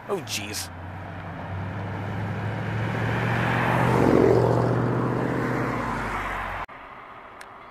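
A sports car with a loud engine roars past close by.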